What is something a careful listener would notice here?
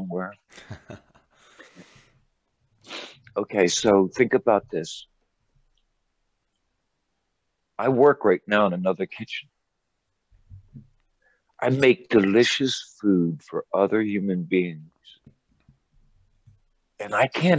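An elderly man speaks calmly and close by, pausing between phrases.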